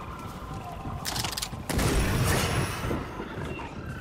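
A loud burst of gunfire rings out nearby.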